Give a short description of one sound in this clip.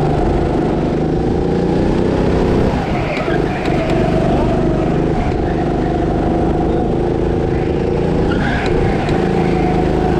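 A go-kart engine drones at full throttle, heard from the driver's seat.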